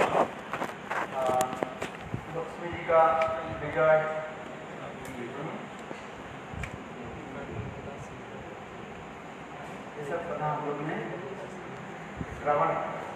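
An elderly man speaks calmly into a microphone, heard through a loudspeaker in an echoing hall.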